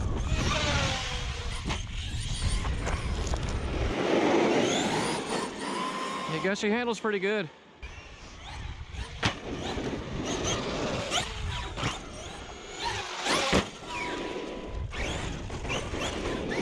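An electric motor of a toy car whines, rising and falling as it speeds up and slows.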